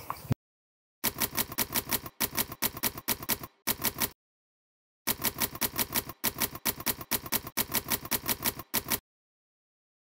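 Typewriter keys clack in quick bursts.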